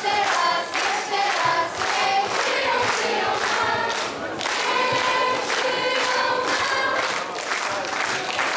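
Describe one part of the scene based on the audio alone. A crowd sings together loudly.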